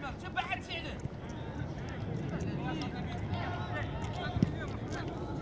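Players shout and call out to each other at a distance outdoors.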